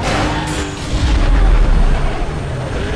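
A car lands hard with a heavy thud.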